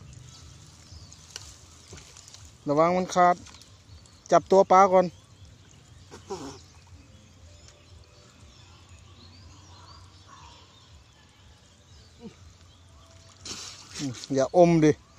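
Water splashes softly as a person swims.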